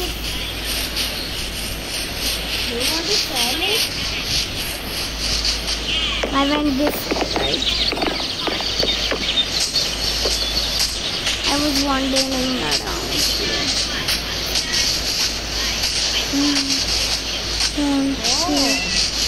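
Footsteps patter steadily on grass and wooden planks.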